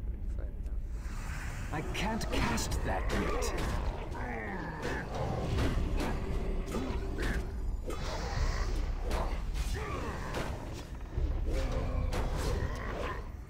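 Weapon blows and spell blasts crash in a hectic fight.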